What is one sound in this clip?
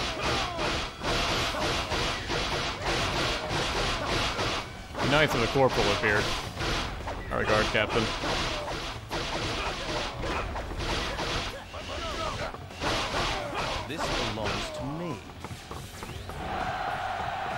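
Swords slash and clang in rapid bursts.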